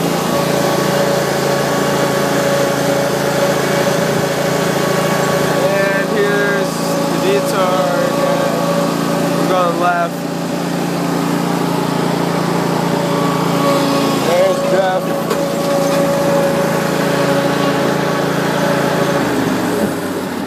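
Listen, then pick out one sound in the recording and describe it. A vehicle engine drones steadily, then cuts off.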